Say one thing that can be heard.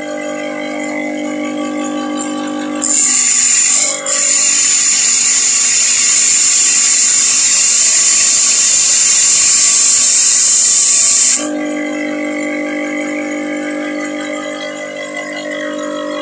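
A bench grinder motor hums steadily.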